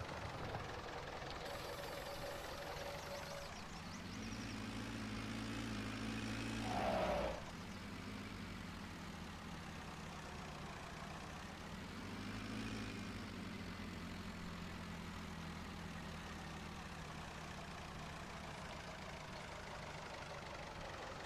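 A tractor engine rumbles steadily, rising and falling.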